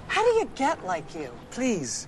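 A woman speaks a short way off.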